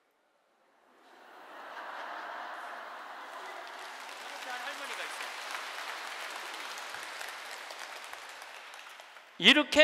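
A large crowd laughs and claps.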